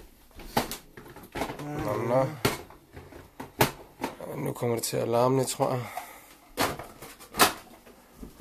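Plastic parts of a kitchen mixer click and knock as they are fitted together.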